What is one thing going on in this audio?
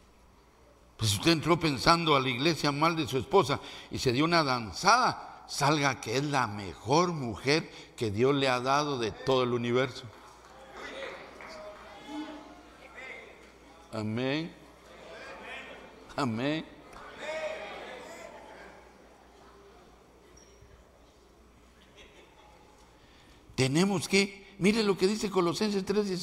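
An older man preaches with animation into a microphone.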